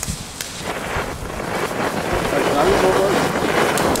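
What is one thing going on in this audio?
A second firework hisses as it shoots sparks.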